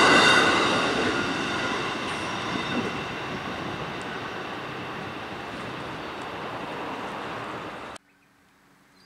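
A level crossing bell rings rapidly.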